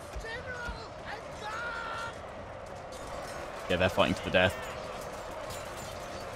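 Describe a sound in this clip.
Swords clash and warriors shout in a large battle.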